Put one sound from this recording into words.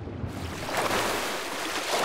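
Water splashes as a figure drops into it.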